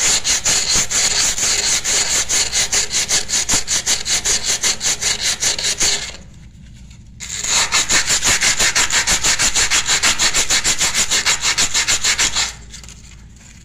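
Water runs and splashes into a sink.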